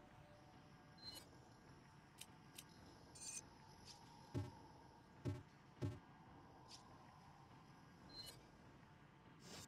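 Short electronic blips sound as a menu selection moves.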